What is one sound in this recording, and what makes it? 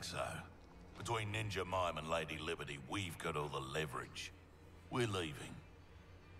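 A man speaks with a tough, confident tone.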